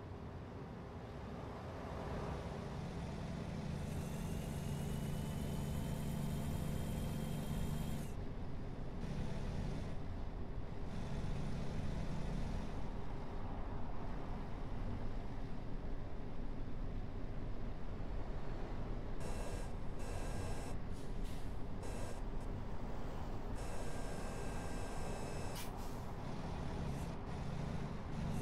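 A truck engine hums steadily as it drives along a highway.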